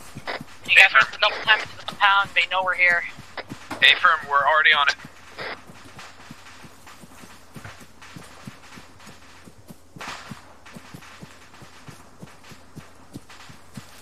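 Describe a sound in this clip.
Footsteps rustle steadily through tall grass.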